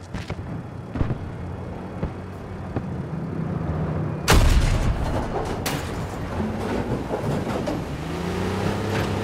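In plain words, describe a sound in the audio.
A tank engine rumbles and its tracks clatter.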